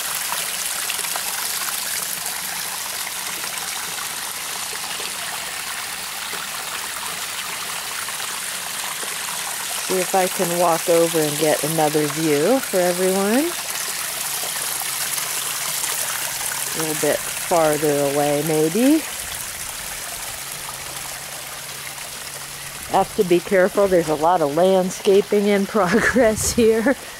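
Water trickles and splashes steadily over rocks nearby.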